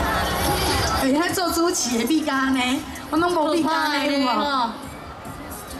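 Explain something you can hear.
A crowd of men shout and cheer nearby.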